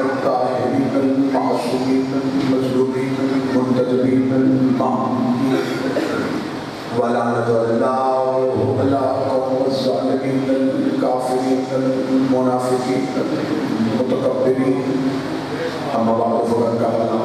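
A young man recites in a sustained, melodic chant through a microphone and loudspeakers.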